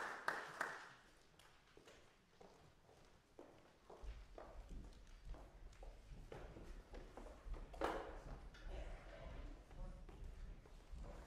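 Footsteps tap across a wooden stage.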